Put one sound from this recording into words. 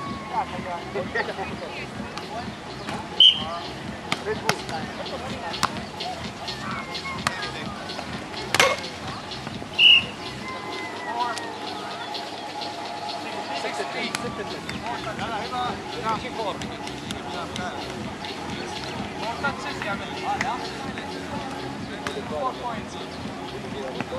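Young men call out to each other outdoors during a game.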